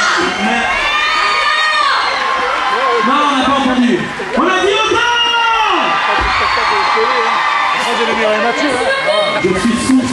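A woman sings into a microphone through loudspeakers.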